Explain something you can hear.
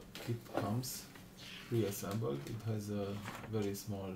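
Paper rustles as hands lift a sheet from bubble wrap.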